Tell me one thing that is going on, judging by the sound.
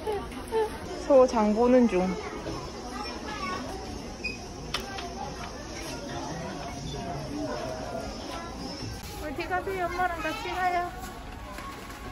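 A toddler babbles nearby.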